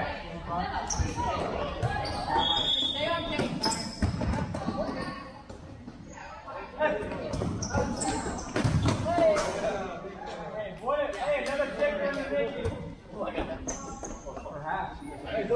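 A ball thuds as players kick it, echoing in a large hall.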